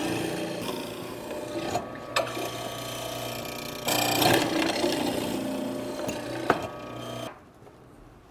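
A chisel chops and scrapes into wood.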